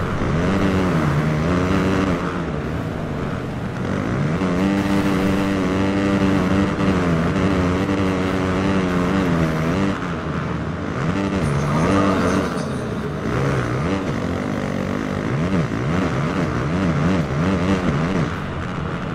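A dirt bike engine revs and whines, rising and falling as the gears shift.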